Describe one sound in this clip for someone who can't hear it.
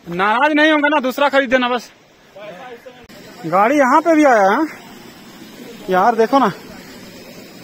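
A man calls out loudly nearby in a drawn-out voice.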